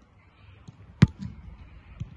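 A foot kicks a ball with a sharp thud.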